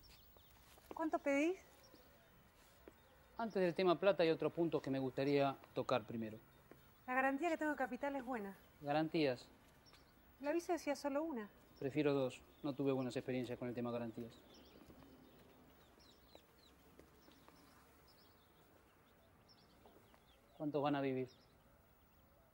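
A woman speaks up nearby.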